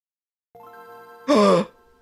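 A short electronic jingle chimes.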